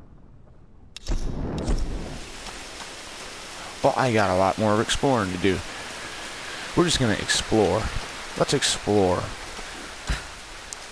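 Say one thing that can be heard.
Footsteps crunch through undergrowth on a forest floor.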